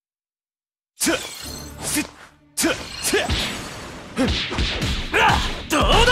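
Punches and kicks land with sharp thuds and whooshes.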